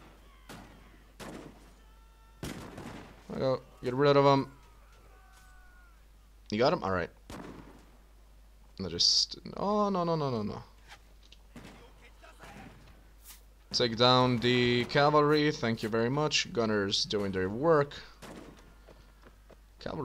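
Muskets fire in scattered shots.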